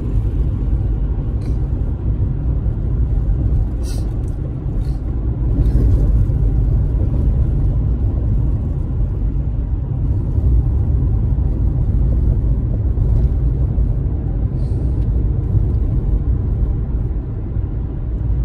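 A car's engine rumbles low and steady as tyres roll along a road.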